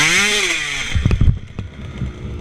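A dirt bike crashes to the ground with a thud.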